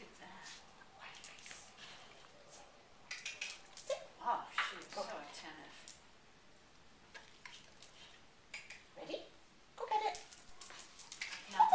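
A woman talks to a dog in a calm, encouraging voice close by.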